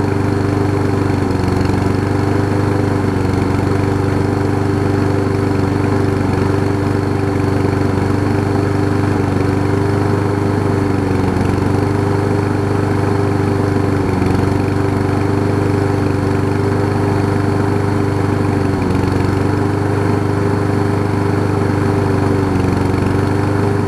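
A small petrol lawn mower engine idles with a steady, throbbing drone close by.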